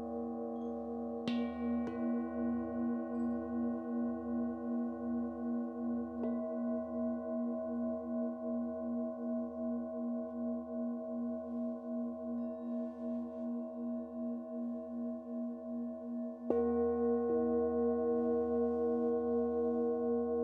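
Singing bowls ring with steady, wavering tones.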